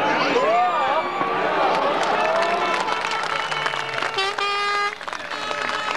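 Rally car engines roar and rev as two cars race past.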